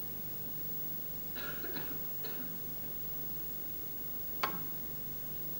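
Snooker balls knock together with a click.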